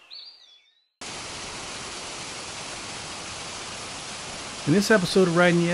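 A waterfall roars and splashes steadily.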